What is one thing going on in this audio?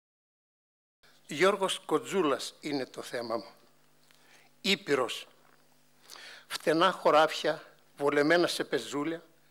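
An elderly man reads out calmly through a microphone.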